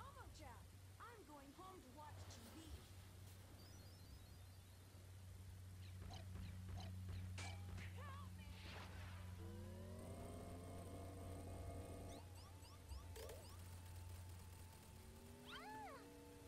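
Retro game music plays with electronic bleeps and jingles.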